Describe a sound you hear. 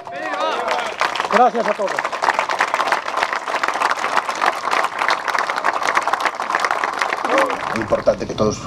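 A crowd applauds outdoors.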